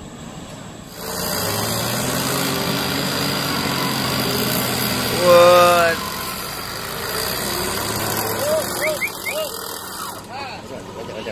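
A truck engine roars and revs hard.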